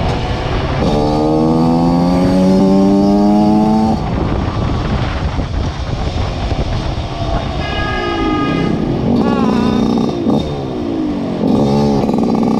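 Wind rushes past at speed.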